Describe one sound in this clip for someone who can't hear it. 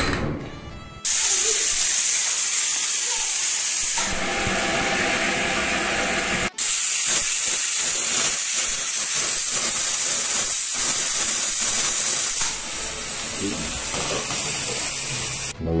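Steam hisses loudly and steadily from a pressure cooker valve.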